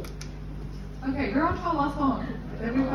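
A young woman speaks into a microphone over loudspeakers.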